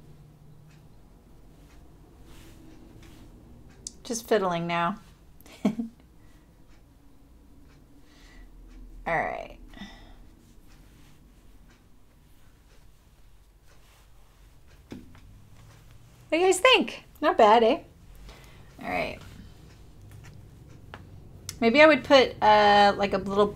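Soft fabric rustles as hands fold and smooth it.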